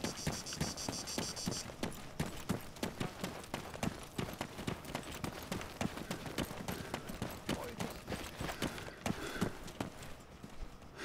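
Footsteps crunch quickly over dry ground.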